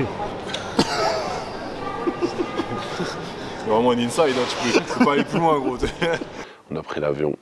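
A man talks with animation close by, in a large echoing hall.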